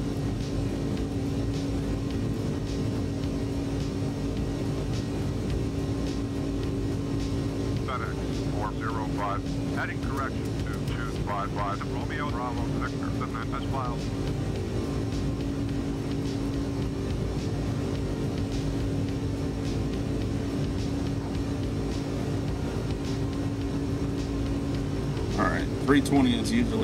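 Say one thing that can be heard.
Jet engines drone steadily from inside a cockpit.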